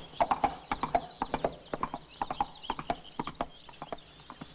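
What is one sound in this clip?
Horse hooves thud rapidly on turf as a horse gallops.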